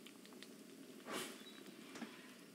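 A metal lever clanks as it is pulled.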